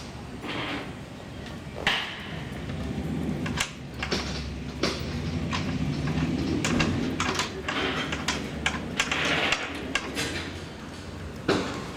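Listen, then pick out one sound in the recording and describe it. A small knob clicks and rattles as fingers turn it on a wooden panel.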